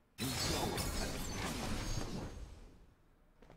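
A magical spell whooshes and sparkles.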